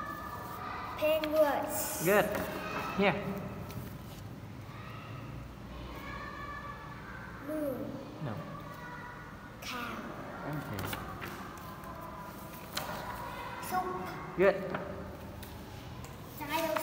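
A young boy speaks nearby in short phrases.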